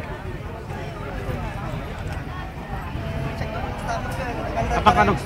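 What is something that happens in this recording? Several young people chatter outdoors.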